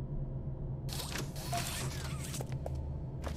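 A mechanical grabber arm shoots out with a quick whir.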